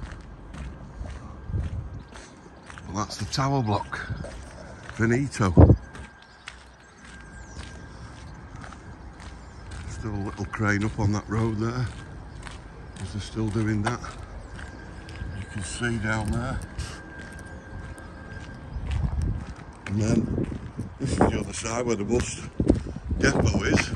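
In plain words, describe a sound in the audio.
Footsteps tap on a hard walkway.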